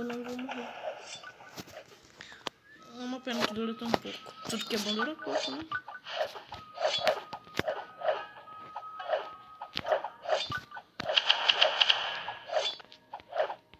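Quick blade slashes whoosh again and again.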